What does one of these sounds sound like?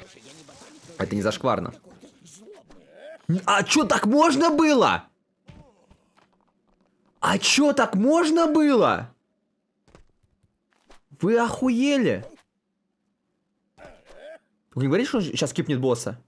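A young man talks with animation into a nearby microphone, in short bursts with pauses.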